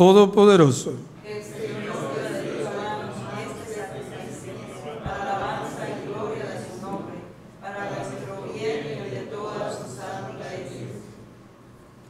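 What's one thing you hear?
A man reads aloud softly through a microphone.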